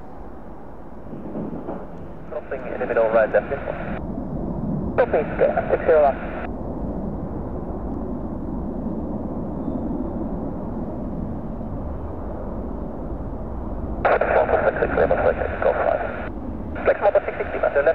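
A four-engine jet airliner roars and rumbles as it climbs after takeoff.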